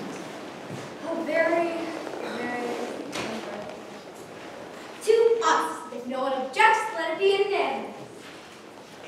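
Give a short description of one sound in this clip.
A young actor speaks loudly and with animation in an echoing hall.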